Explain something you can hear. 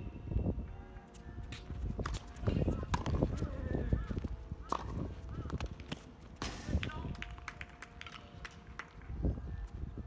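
A tennis ball is struck back and forth by rackets outdoors.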